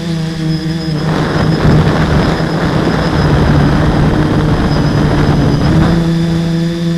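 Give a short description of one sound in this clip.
Wind rushes loudly past as the drone dives low.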